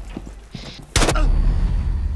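A gunshot bangs loudly close by.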